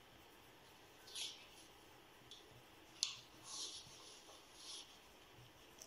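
A pencil scratches on paper in short strokes.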